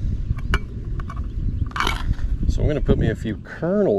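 A metal can's ring-pull lid pops and peels open.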